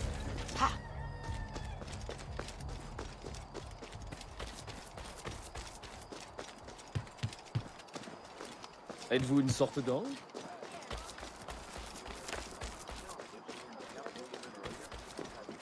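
Footsteps patter quickly on dirt as someone runs.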